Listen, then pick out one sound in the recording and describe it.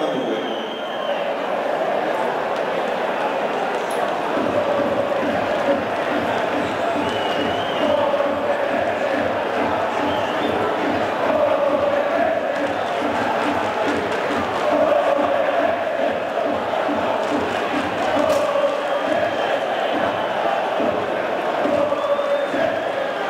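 A crowd of fans chants loudly in an echoing stadium.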